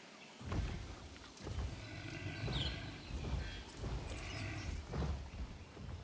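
A large animal snorts and grunts close by.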